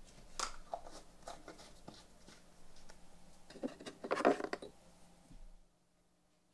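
Leather rustles and taps softly as it is handled.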